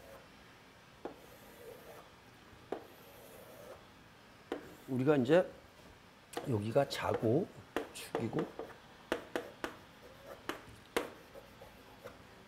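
Chalk taps and scrapes on a chalkboard.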